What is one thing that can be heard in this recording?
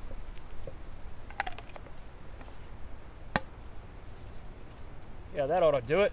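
A wooden stick scrapes and rustles against dry leaves.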